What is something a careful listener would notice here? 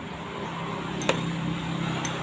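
A metal tool clinks as it is picked up from a hard floor.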